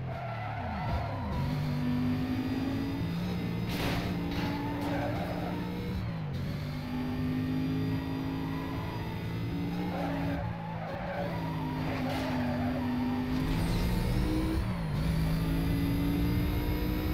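A car engine roars at high speed, revving and shifting gears again and again.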